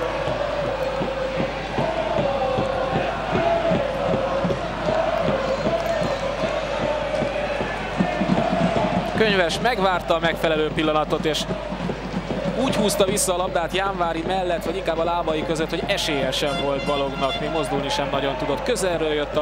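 A stadium crowd chants and sings steadily in the distance.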